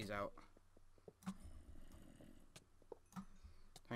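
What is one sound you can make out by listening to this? A pickaxe knocks and breaks blocks.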